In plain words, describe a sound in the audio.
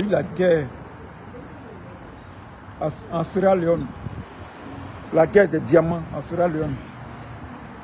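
A middle-aged man talks calmly and close up, in short bursts.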